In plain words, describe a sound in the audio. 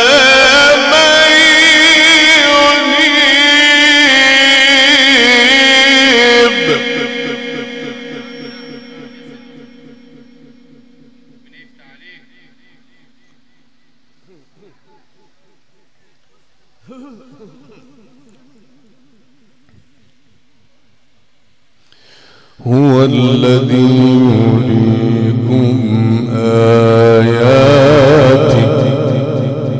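An elderly man chants melodically into a microphone, with a long echo trailing off through a large hall.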